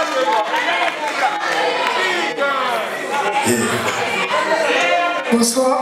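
Young men sing into microphones over loudspeakers in a large hall.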